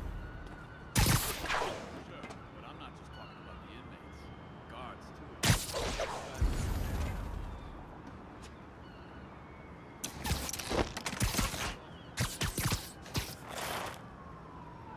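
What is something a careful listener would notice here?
Sharp whooshing swings rush through the air in bursts.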